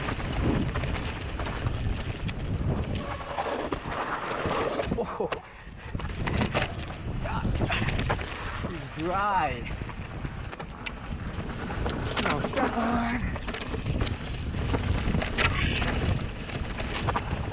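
A mountain bike's frame and chain clatter over bumps.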